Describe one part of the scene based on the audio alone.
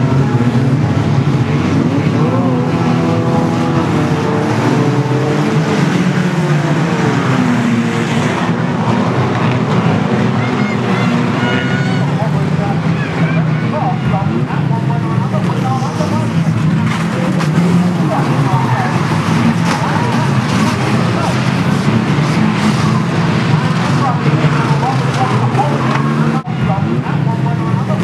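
A crowd of spectators chatters and shouts.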